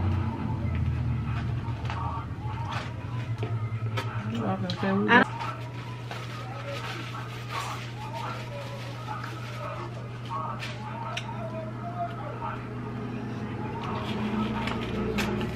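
A woman chews food loudly close by.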